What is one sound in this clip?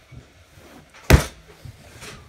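A soft toy drops onto a hard floor with a thump.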